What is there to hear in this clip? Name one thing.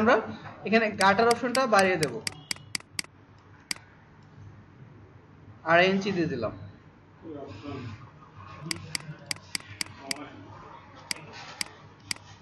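A computer mouse clicks quickly, again and again.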